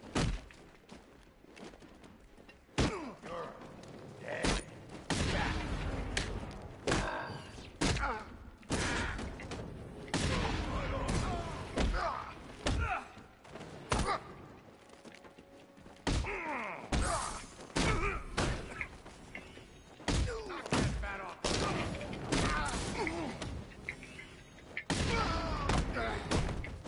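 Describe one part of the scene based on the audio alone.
Men grunt and shout as they are hit.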